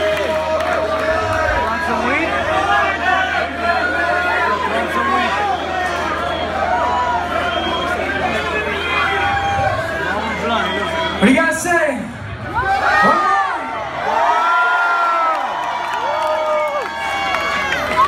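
A concert crowd cheers and whistles in a large hall.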